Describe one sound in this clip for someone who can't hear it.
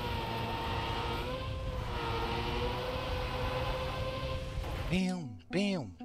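A racing car engine hums steadily.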